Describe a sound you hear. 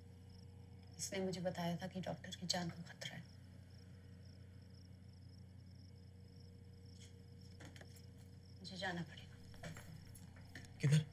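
A young woman speaks nearby with emotion, in short bursts.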